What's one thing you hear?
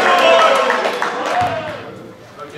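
Players shout and cheer in a large echoing hall.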